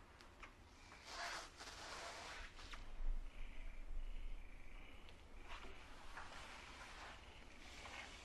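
A fabric curtain rustles as it is pushed aside.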